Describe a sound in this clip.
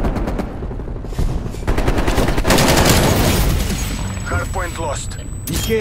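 A rifle fires quick bursts of gunshots close by.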